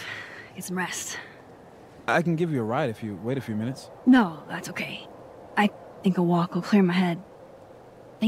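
A young woman speaks calmly and softly.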